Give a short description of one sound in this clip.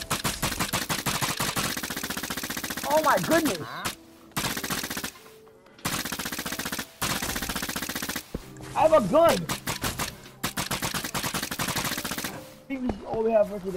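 A crossbow fires rapid, repeated shots.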